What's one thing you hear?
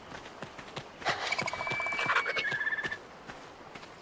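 A large bird cries overhead.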